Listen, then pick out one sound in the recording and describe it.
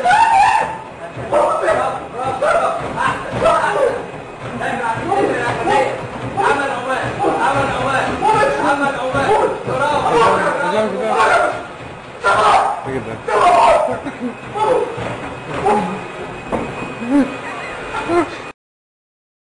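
A treadmill belt whirs steadily.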